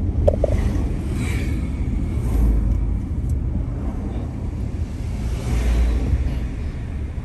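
Passing vehicles swish by close outside.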